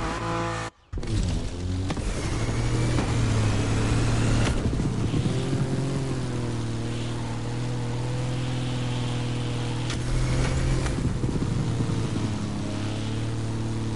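A propeller plane engine drones steadily, rising and falling in pitch.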